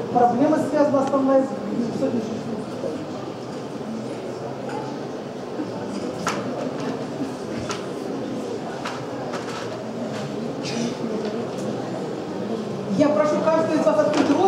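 A middle-aged woman speaks into a microphone, heard through a loudspeaker.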